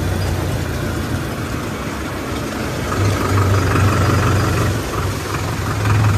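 A tractor engine rumbles steadily up close.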